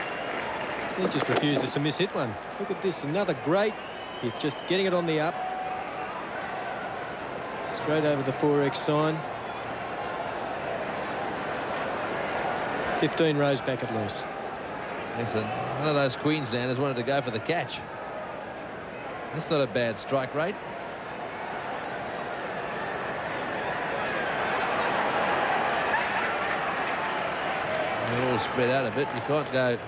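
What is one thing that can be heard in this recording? A large crowd cheers and murmurs in an open stadium.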